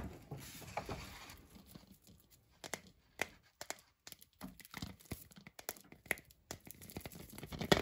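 Foil wrapping crinkles under fingers.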